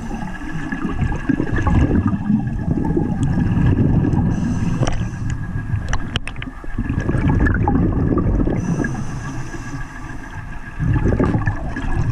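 Bubbles gurgle and rumble underwater.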